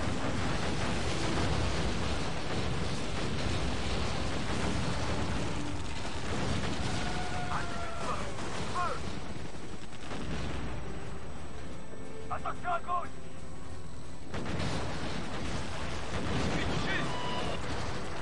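Explosions boom and rumble one after another.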